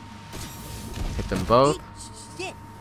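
Cartoonish hit effects thump and whoosh in a fight.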